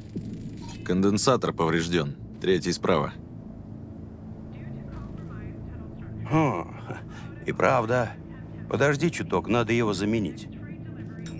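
A second man answers in a relaxed voice.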